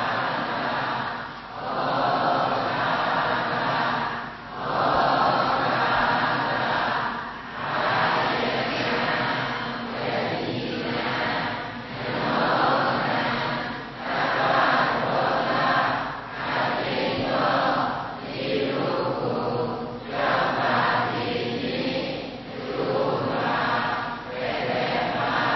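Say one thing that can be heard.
A large crowd chants a prayer together in unison, in phrases with short pauses, echoing in a large hall.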